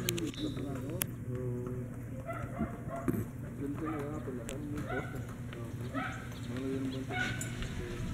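A young girl talks nearby.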